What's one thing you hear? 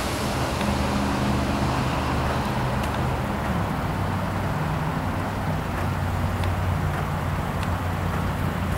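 A pickup truck's engine idles with a low, steady rumble.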